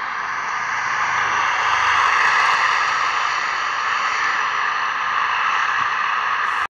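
Tyres roll on asphalt with a steady hiss.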